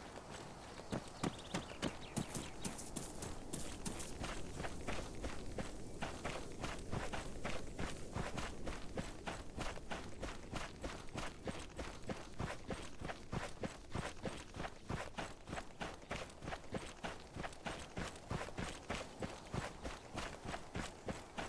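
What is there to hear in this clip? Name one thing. Quick footsteps run steadily over grass and earth.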